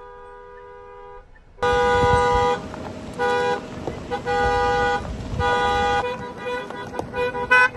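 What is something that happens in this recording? Cars drive slowly over a gravel road.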